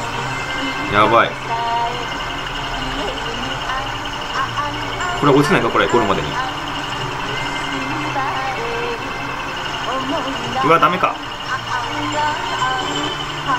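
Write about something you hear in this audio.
A racing game's car engine hums steadily at speed.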